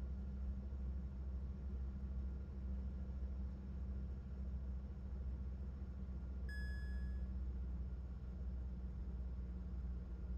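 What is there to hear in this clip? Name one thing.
A turboprop engine hums steadily as the aircraft taxis.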